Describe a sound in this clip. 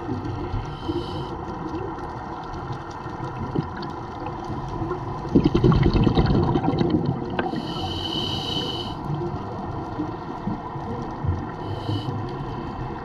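A diver breathes in through a regulator with a hiss.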